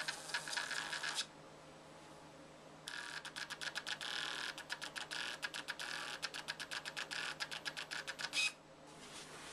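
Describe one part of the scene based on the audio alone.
A small printer whirs in quick bursts as it feeds out paper.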